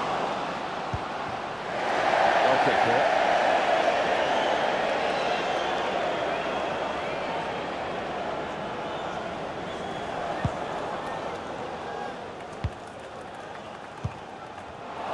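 A football is kicked with short thuds.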